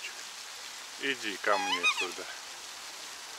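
A black swan gives a high, musical bugling call nearby.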